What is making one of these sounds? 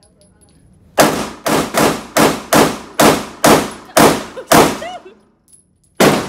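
A man fires a rapid string of pistol shots.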